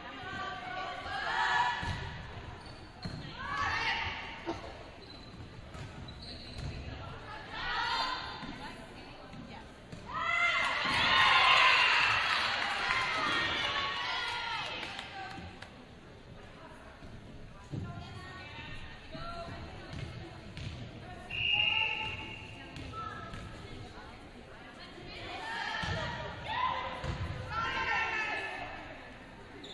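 A volleyball is struck by hand in a large echoing gym.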